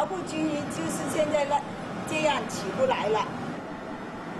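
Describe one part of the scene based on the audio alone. A woman speaks calmly and clearly.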